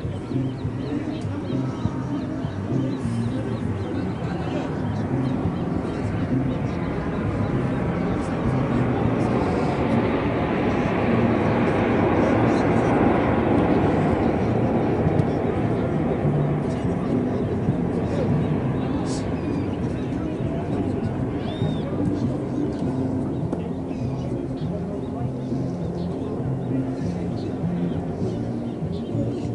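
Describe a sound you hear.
Young men talk and shout together outdoors, close by.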